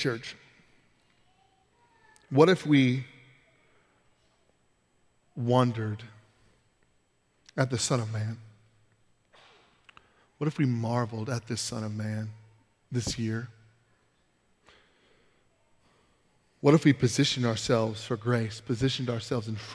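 A man speaks calmly through a microphone, pausing often between phrases.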